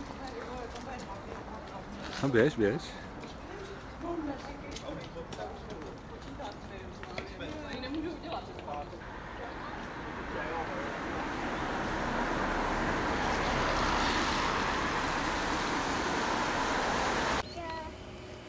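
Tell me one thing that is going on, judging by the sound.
Footsteps tap on paving stones.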